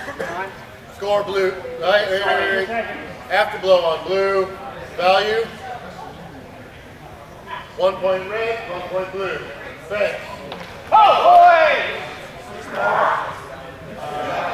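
A man announces loudly.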